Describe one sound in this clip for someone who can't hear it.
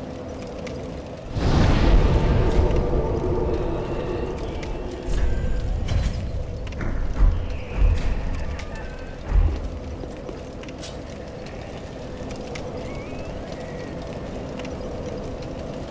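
A small fire crackles steadily.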